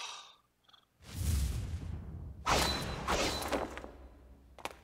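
A glowing energy blast whooshes and roars.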